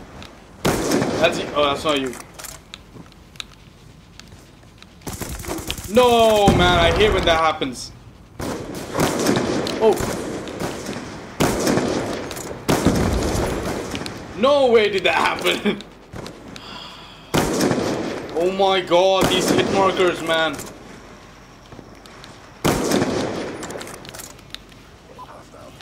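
A sniper rifle fires loud, sharp shots.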